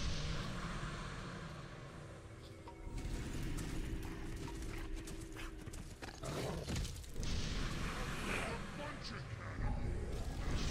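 Heavy hooves pound quickly over soft ground.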